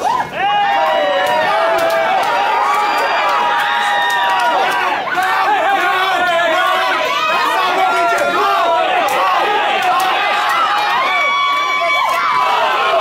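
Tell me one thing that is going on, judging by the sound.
A crowd of men and women shouts and cheers loudly in a large room.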